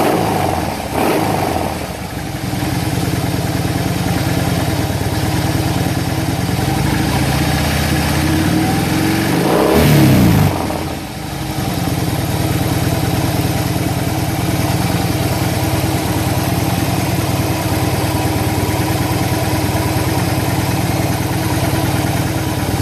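A motorcycle engine idles with a deep, steady rumble close by.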